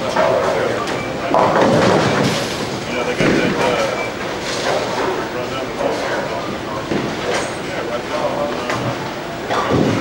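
A bowling ball rumbles down a wooden lane.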